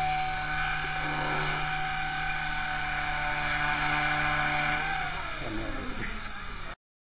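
A small drone's propellers whir with a steady high whine, then wind down.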